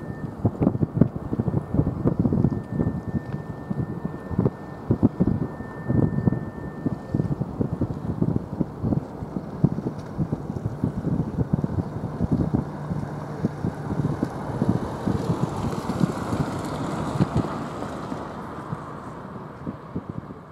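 Wind gusts buffet loudly outdoors.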